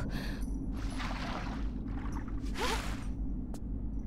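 Water splashes as a figure wades.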